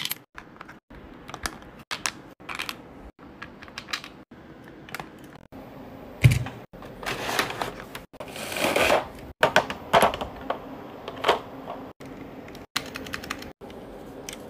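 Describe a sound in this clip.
Plastic keycaps click as they are pressed onto a keyboard.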